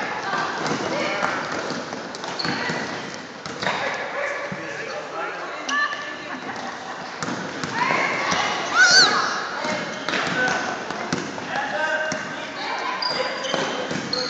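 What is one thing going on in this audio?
Young boys shout and call out in a large echoing gym.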